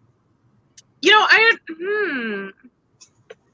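A young woman speaks in a high, expressive voice over an online call.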